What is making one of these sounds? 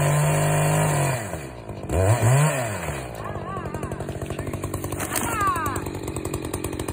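A chainsaw engine drops and revs in short bursts.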